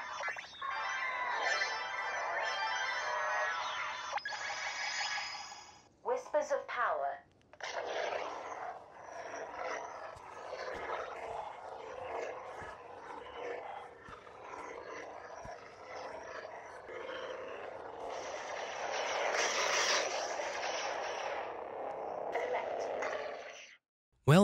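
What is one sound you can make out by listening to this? A toy lightsaber hums electronically.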